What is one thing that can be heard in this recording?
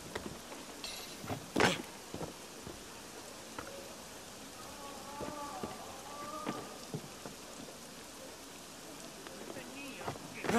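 Hands and feet scrape and knock while climbing a wall.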